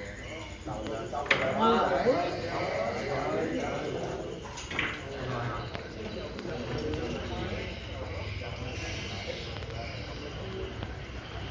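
Billiard balls knock together.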